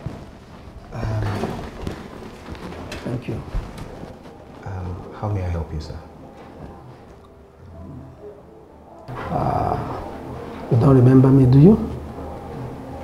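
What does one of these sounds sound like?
A second man answers calmly nearby.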